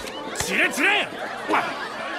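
A young man shouts angrily up close.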